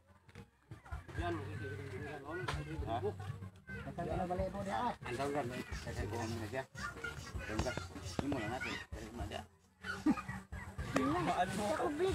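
Several young men talk loudly close by.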